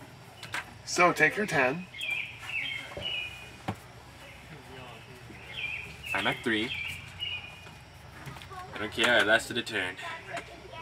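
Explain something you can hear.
A second young man answers calmly nearby.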